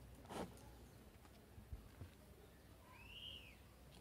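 A clay pot scrapes and knocks lightly on a hard tabletop as it is lifted.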